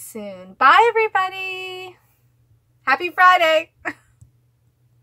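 A young woman speaks brightly and with animation, close by.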